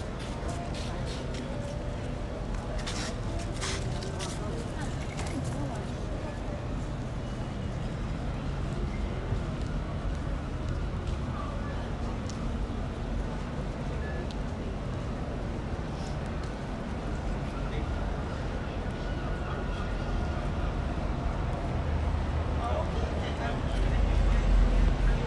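Footsteps tap on paving stones nearby.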